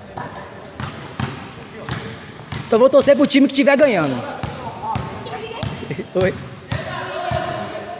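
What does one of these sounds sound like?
A ball bounces and thuds on a hard floor.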